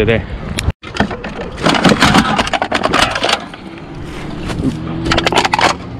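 Aluminium cans clink and rattle as a hand grabs them.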